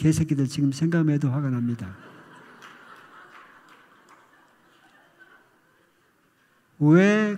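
An elderly man speaks slowly into a microphone in a large echoing hall.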